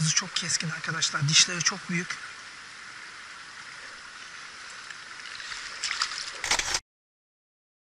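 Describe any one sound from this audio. A fishing net rustles as hands handle a fish.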